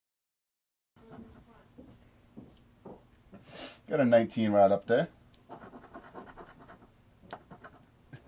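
A coin scratches across a paper card.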